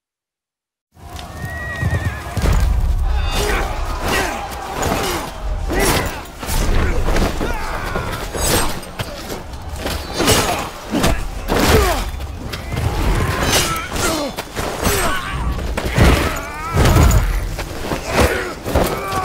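Metal swords clash and ring.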